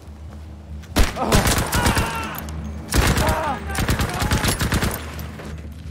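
A rifle fires several sharp shots in quick bursts.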